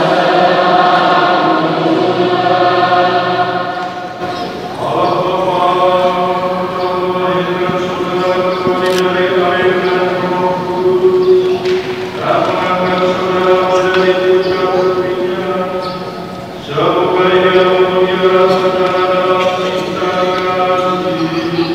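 A large congregation of men and women sings together in sustained phrases, echoing through a large hall.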